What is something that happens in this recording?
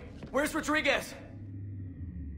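A man speaks urgently, close by.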